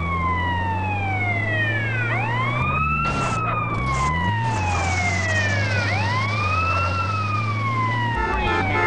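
A heavy engine hums steadily.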